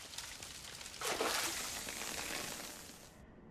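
A burst of fire whooshes and crackles.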